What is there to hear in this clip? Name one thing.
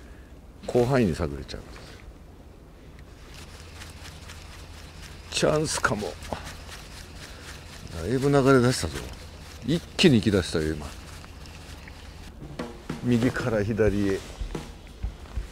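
A man talks in short bursts close by.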